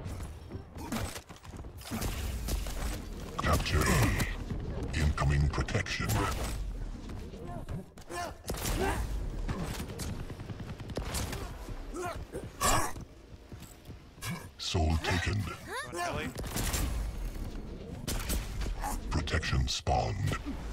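Gunshots fire rapidly from a game.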